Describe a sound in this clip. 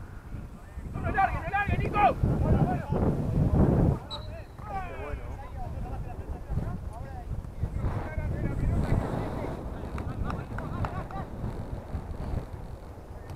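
Young men shout across an open field in the distance.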